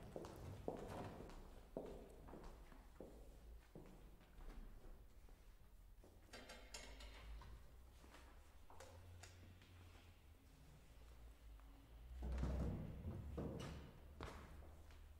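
An electric guitar plays sparse plucked notes that ring out in a large echoing hall.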